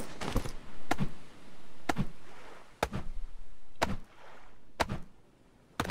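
A stone axe chops into a wooden log with sharp, repeated knocks.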